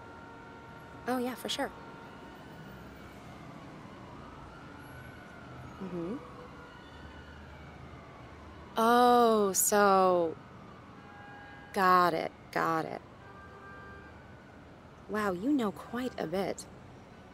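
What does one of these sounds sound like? A young woman speaks with animation, close by, in short bursts.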